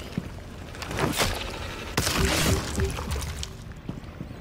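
A heavy melee blow whooshes and crunches.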